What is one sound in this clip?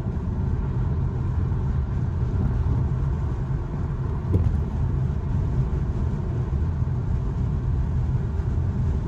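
A car's engine hums steadily with low road rumble from inside the car.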